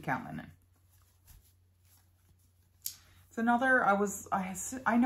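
Thin paper rustles as it is handled.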